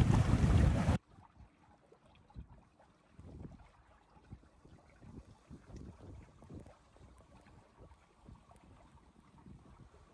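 Water laps and splashes softly against a boat's hull.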